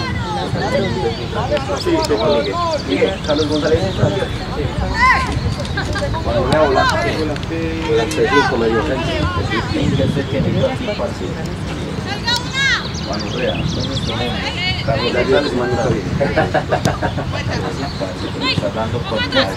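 A football is kicked on artificial turf with dull thuds.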